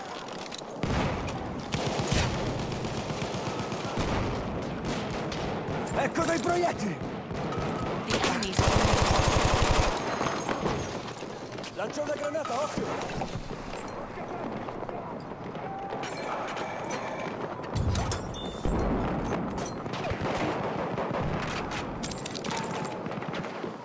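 Gunfire rattles in rapid bursts, echoing off close walls.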